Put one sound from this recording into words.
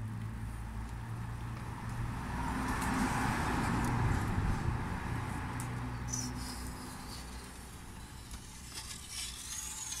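Plastic tint film rustles and crinkles against a car window.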